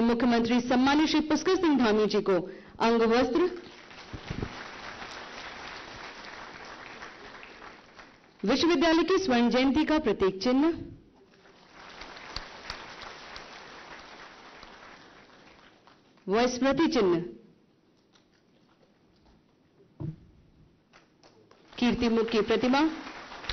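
A woman announces through a loudspeaker in a large echoing hall.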